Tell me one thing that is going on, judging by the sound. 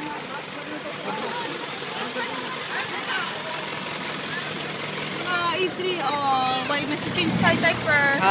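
A group of young people and children chatter.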